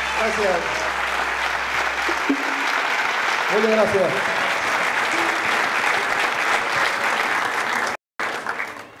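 A band plays music with guitars and drums.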